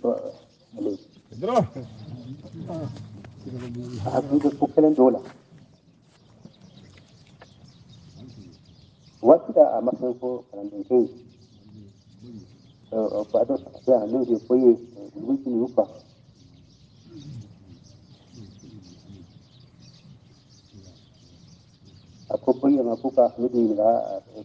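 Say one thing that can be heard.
An elderly man speaks slowly and calmly, in bursts with pauses.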